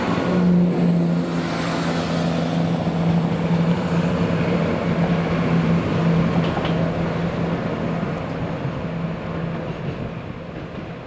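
A diesel train engine drones loudly close by, then fades as the train pulls away.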